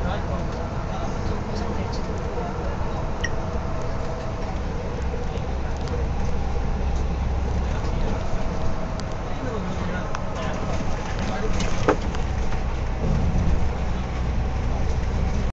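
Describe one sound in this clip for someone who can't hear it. A vehicle's engine hums steadily as it drives along a highway.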